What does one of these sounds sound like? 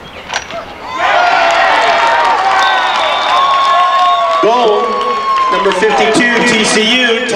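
A crowd cheers loudly from the stands.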